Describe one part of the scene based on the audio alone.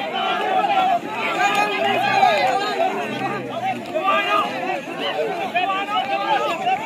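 A large outdoor crowd of men shouts and cheers excitedly.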